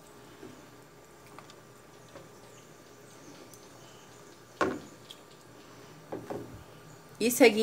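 Pieces of fish splash softly into a pot of liquid.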